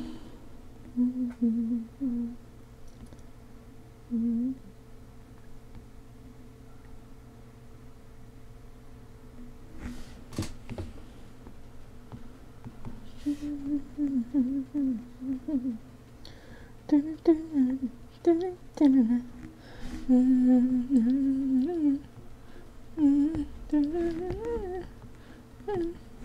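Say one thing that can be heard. A young woman talks casually and animatedly into a close microphone.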